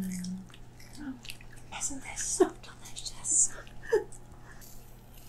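Crisp kale crunches loudly as a woman chews.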